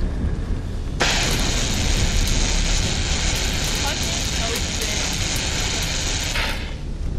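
A cutting torch hisses and crackles loudly.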